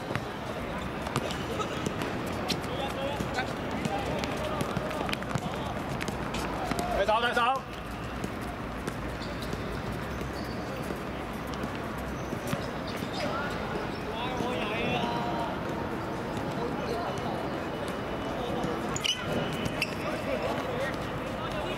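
A football thuds as it is kicked.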